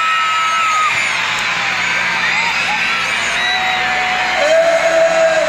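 A large crowd cheers and chatters in a big echoing arena.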